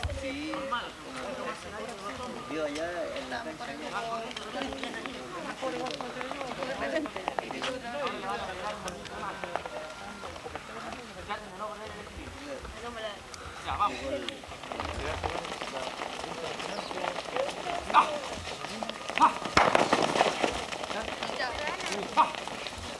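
Young players shout and call out outdoors, heard from a distance.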